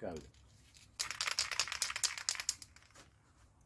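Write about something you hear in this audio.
An aerosol can hisses as it sprays.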